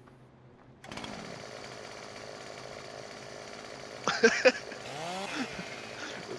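A chainsaw idles with a steady buzzing drone.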